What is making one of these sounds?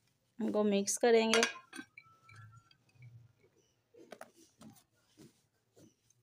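Chopped vegetables tumble into a glass bowl.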